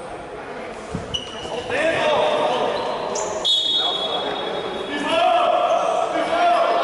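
A ball thuds as players kick it on an indoor court.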